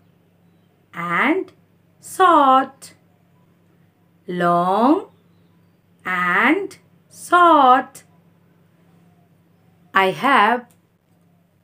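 A woman speaks close by in short, lively bursts with long pauses.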